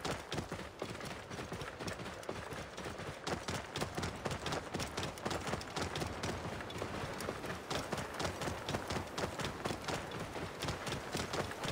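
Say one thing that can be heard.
A camel's hooves thud steadily on sand and stones.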